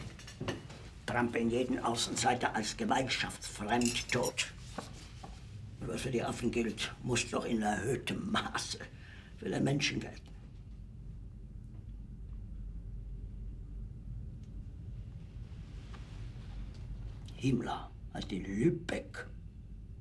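A middle-aged man speaks firmly and with animation, close by.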